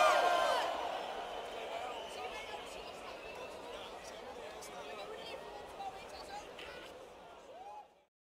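A large crowd cheers and shouts loudly, then slowly fades.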